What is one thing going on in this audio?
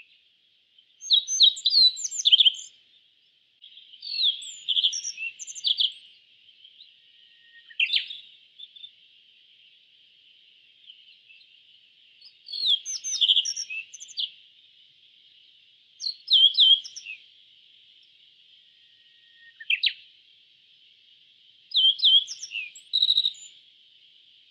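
A small songbird sings short bursts of high, chirping trills again and again.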